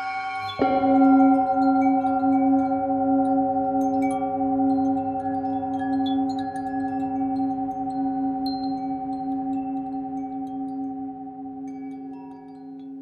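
A metal singing bowl is struck and rings with a long, wavering hum that slowly fades.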